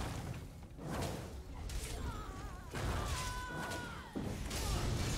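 Magic spells crackle and blast in quick bursts.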